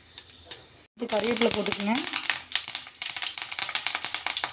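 Fresh leaves drop into hot oil with a loud burst of sizzling.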